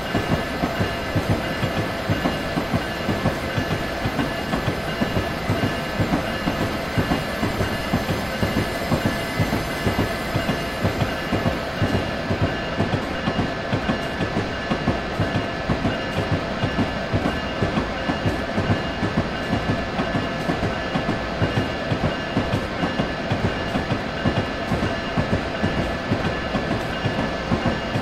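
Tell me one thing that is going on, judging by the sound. A train rumbles steadily along the tracks, its wheels clicking over rail joints.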